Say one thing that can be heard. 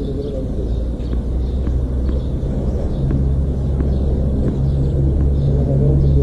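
A tennis ball bounces on a hard court, again and again at an even pace.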